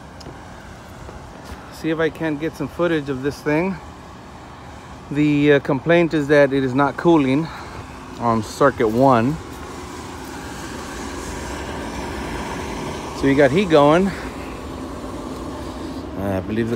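A rooftop air conditioning unit hums steadily.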